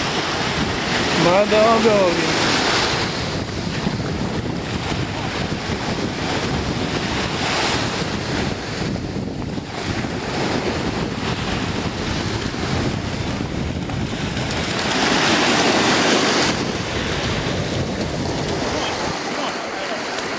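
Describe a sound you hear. Waves wash and lap steadily outdoors.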